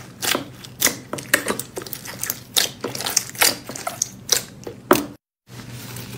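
Hands squish and squelch soft slime.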